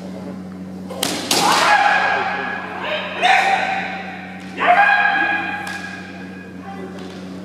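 Kendo fencers shout battle cries in an echoing hall.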